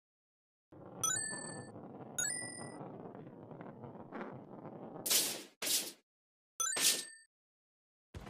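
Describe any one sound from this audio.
Bright chimes ring out as coins are picked up.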